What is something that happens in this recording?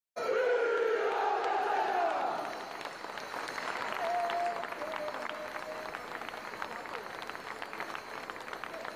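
A large crowd of men shouts and cheers loudly in an echoing hall.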